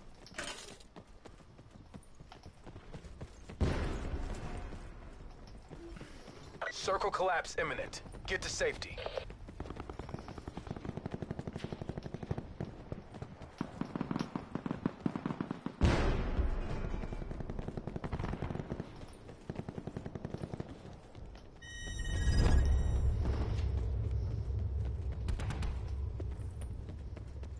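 Footsteps thud steadily across wooden floors indoors.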